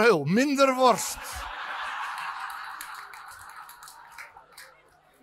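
An audience laughs and murmurs.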